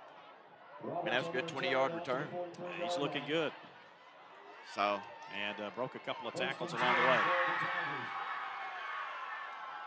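A crowd cheers outdoors.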